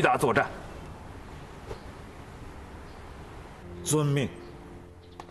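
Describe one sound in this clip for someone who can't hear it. A man speaks firmly at close range.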